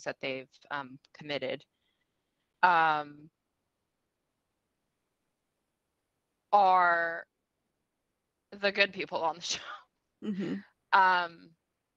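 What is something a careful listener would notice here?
A young woman talks in short bursts over an online call.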